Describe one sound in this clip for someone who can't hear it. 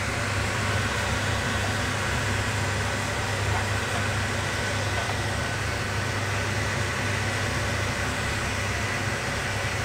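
A wooden spoon scrapes and stirs in a frying pan.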